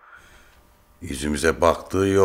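A man talks calmly into a phone, close by.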